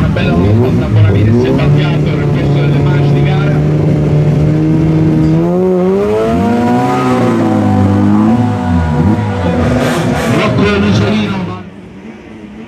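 A rally car engine idles loudly and revs up and down.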